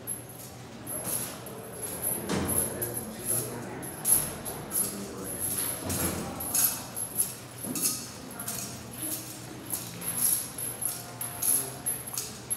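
Handcuffs and chains jingle and clink.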